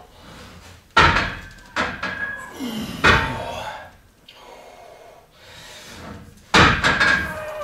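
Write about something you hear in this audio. Heavy barbell plates clank against metal.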